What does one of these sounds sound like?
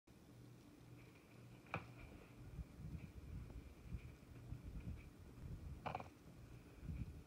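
A cat's paws pad softly across carpet.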